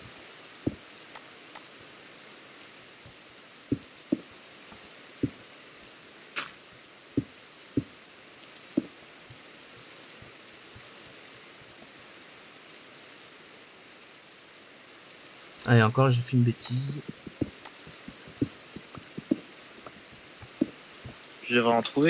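Stone blocks are set down with short, dull knocks.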